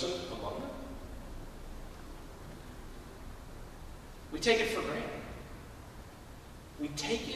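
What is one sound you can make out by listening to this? A man speaks slowly and calmly through a microphone in a large echoing hall.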